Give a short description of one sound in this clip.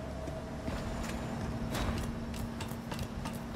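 Footsteps clank on metal ladder rungs.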